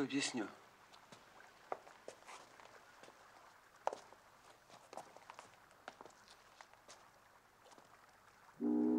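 Footsteps sound on wet pavement.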